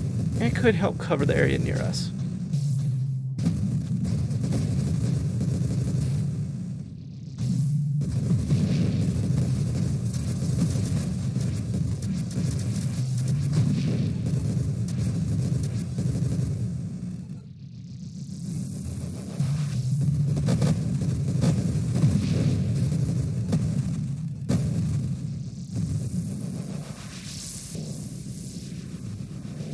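Rapid laser shots and bursting explosions crackle from an arcade space game.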